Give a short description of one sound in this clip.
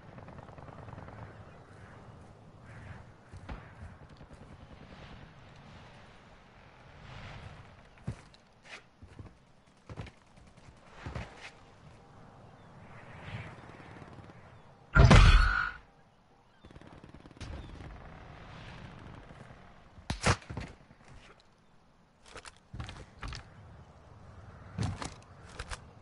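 Footsteps thud on stone.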